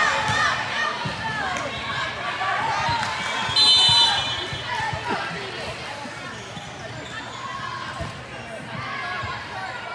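Young women call out and shout to each other in a large echoing hall.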